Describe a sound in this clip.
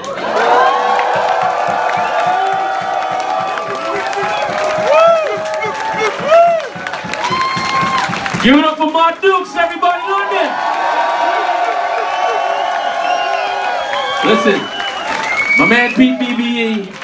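A man sings loudly into a microphone in a large echoing hall.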